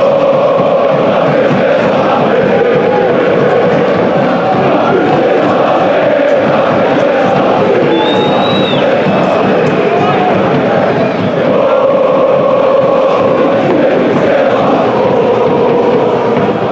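A large stadium crowd chants and roars steadily throughout.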